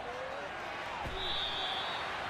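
Football players collide with a heavy thud.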